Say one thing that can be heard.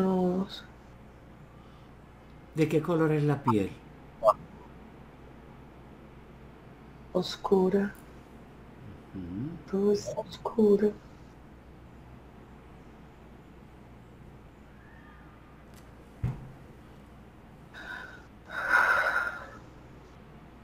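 A middle-aged man speaks in short bursts over an online call.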